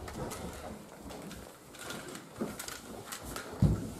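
Footsteps thud quickly on a wooden floor and stairs.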